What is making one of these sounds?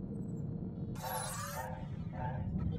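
A whooshing sweep plays as a map opens.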